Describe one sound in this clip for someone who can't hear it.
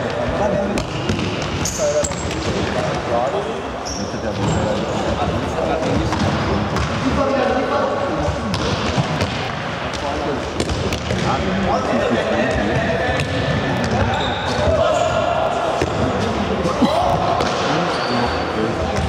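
Young players shout and call out to each other in a large echoing hall.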